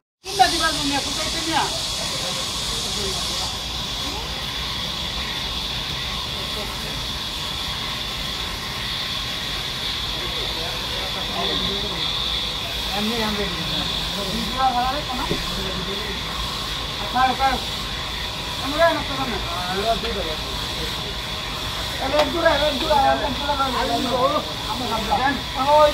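A band saw whines steadily as it cuts through a large log.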